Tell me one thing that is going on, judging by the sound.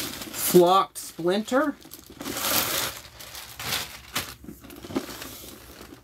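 Plastic packaging crinkles and rustles in a man's hands.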